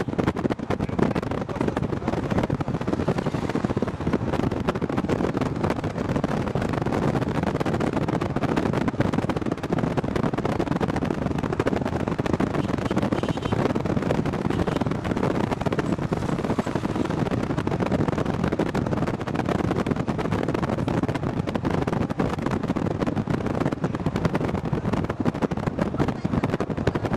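Wind buffets loudly against the vehicle.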